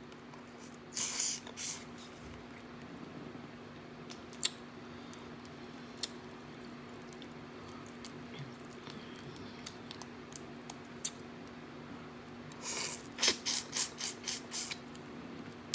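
A woman slurps and sucks loudly close by.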